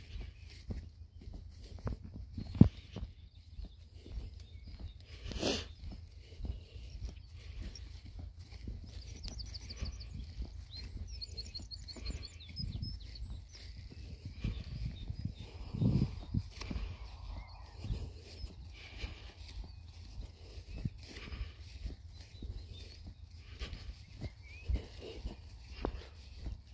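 Footsteps swish and thud softly through grass.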